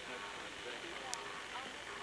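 A fax machine whirs as it feeds out a page.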